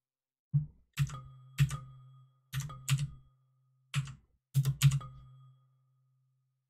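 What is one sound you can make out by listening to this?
Short electronic clicks with a brief ringing tone play in bursts.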